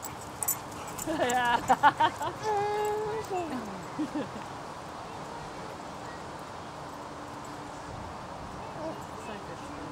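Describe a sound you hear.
Dogs run across grass.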